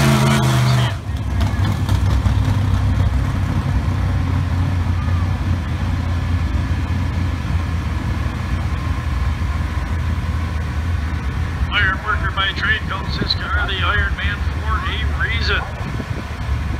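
A race car's engine rumbles low and steadily, farther off.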